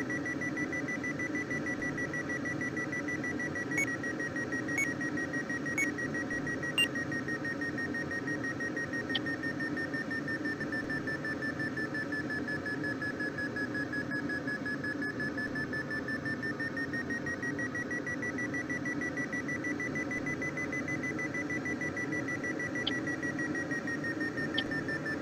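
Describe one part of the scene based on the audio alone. A flight instrument sounds a steady, rapidly pulsing tone that slowly dips lower and rises again.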